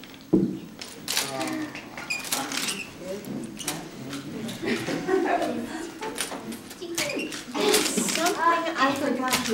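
Several adults talk and greet each other warmly nearby.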